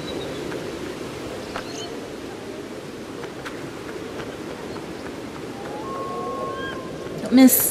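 Light footsteps patter across stone.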